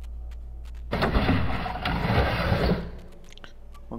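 A wooden sliding door rattles open.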